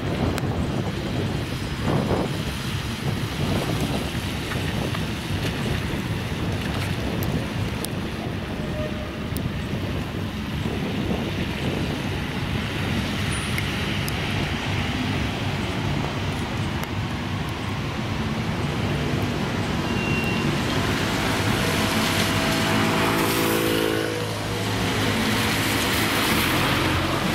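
An ambulance engine drones as it drives by.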